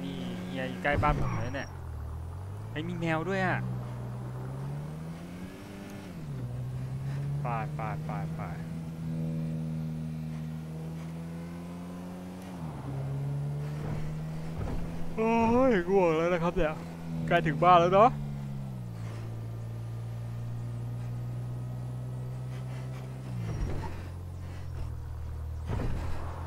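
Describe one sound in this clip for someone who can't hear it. A car engine hums and rises and falls in pitch as it shifts gears.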